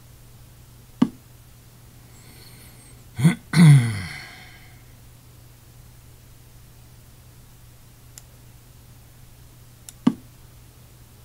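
A game piece clicks softly as it is placed on the board.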